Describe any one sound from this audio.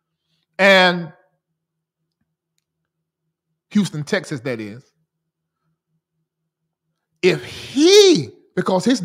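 A man speaks with animation into a close microphone, in short bursts with pauses.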